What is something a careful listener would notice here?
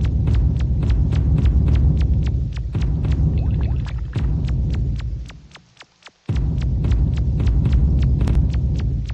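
Footsteps tap in a quick, steady rhythm.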